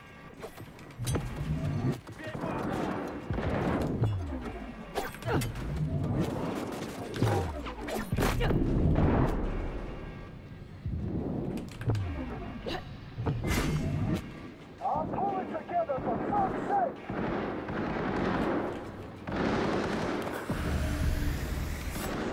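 Gunshots fire in quick bursts, with loud booming blasts.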